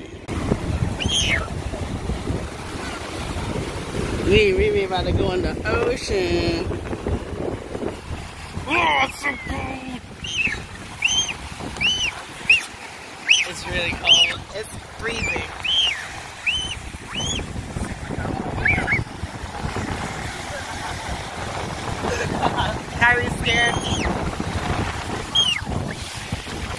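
A small child squeals and shrieks excitedly.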